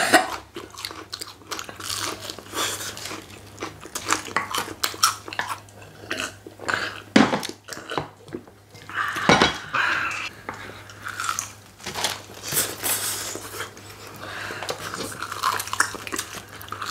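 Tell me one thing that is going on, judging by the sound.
Chopsticks clink against bowls.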